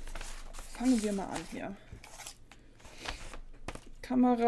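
Cardboard packaging rustles and scrapes as it is opened.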